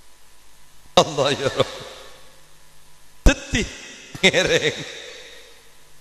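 A man chants loudly through a microphone in a large echoing space.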